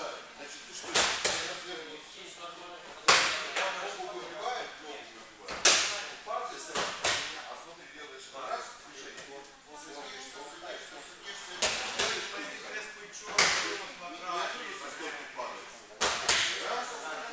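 Bodies thud onto a padded mat in a large echoing hall.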